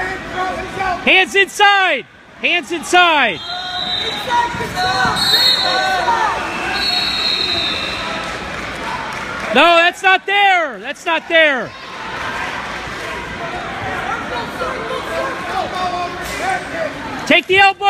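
Spectators shout and cheer loudly in bursts.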